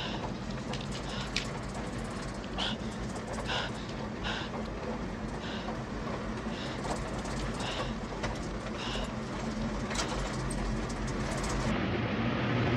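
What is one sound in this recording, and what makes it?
A vehicle engine hums steadily from inside a moving van.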